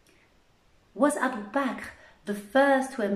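A young woman speaks softly and calmly close to a microphone.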